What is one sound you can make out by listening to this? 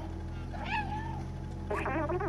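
A cat meows.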